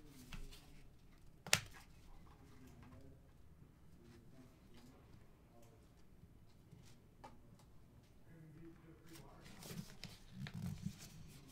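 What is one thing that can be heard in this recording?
Cards rustle and slide as hands sort through them.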